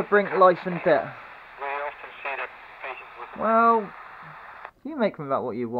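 A small handheld radio crackles with static and snatches of speech.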